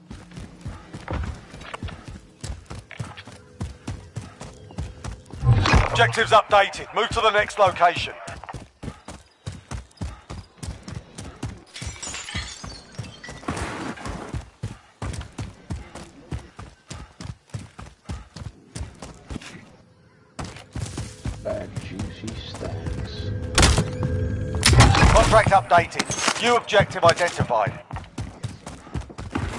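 Quick footsteps run over ground and wooden floors.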